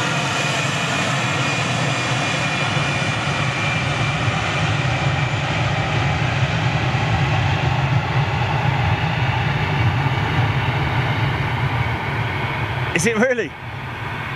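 A jet airliner's engines roar loudly as it rolls along a runway.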